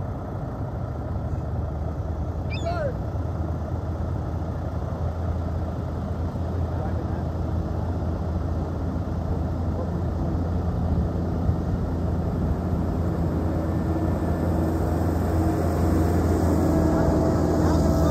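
A heavy machine's diesel engine approaches and grows louder.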